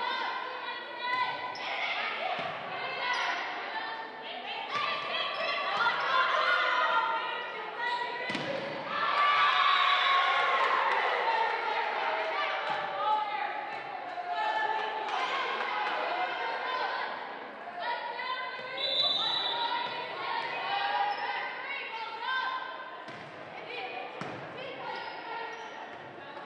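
A crowd in the stands cheers and claps.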